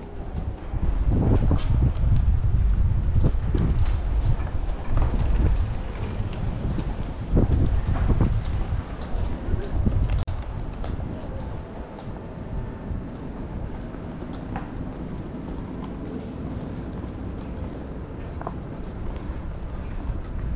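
Footsteps tap on pavement nearby.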